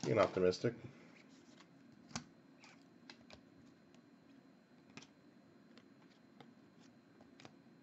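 Trading cards flick and shuffle softly in the hands.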